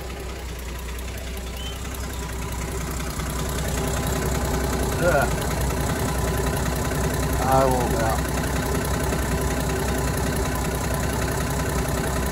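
A slant-six car engine idles.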